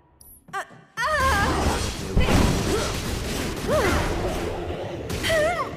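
A loud magic blast crackles and roars.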